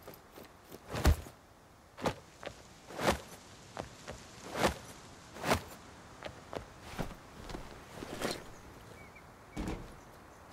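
Hands and boots clank on a metal ladder rung by rung.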